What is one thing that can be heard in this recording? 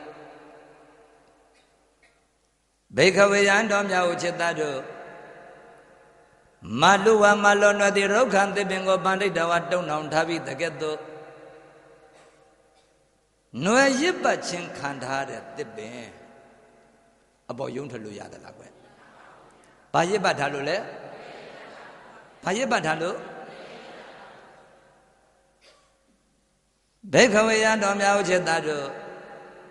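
A man chants in a slow, wavering voice through a microphone, with long echoing phrases.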